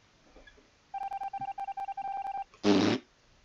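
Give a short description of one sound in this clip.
A steady electronic beeping tone plays from a game.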